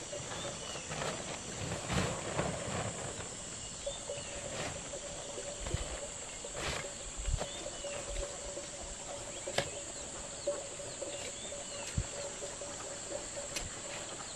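Shovels scrape and scoop through sand and gravel.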